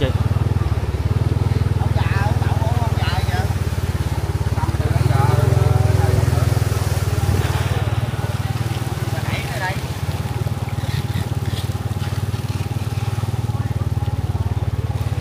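A bus engine idles with a low steady rumble close by.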